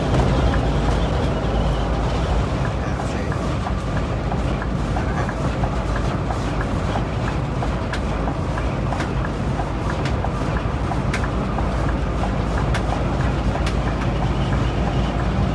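A bus cab rattles and clicks now and then.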